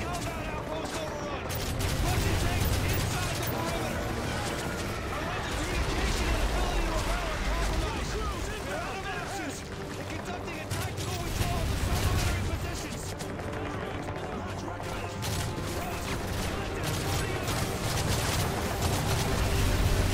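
A low rumble of battle noise rolls steadily.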